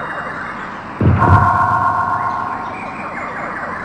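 A deep rumbling boom sounds.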